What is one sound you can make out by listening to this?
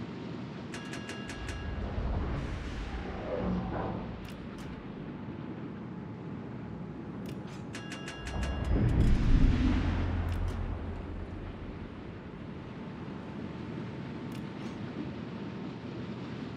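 A ship's engine rumbles low.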